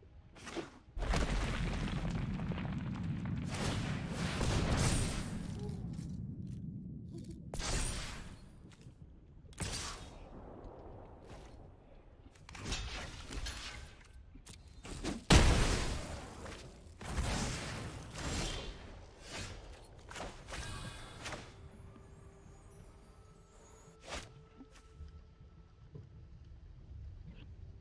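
Game sound effects whoosh and boom as cards are played.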